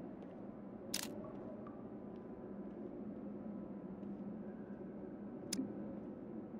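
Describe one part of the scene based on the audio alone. Short interface clicks sound now and then.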